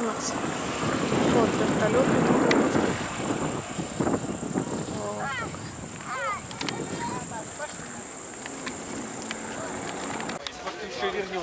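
A helicopter's engine and rotor drone overhead.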